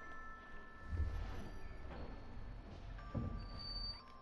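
A wooden door swings open with a creak.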